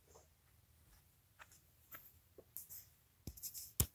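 A woman's footsteps move away across the floor.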